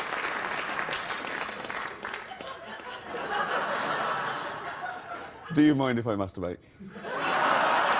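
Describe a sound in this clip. A studio audience laughs and cheers loudly.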